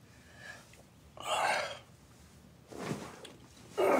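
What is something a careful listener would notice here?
A blanket rustles and flaps.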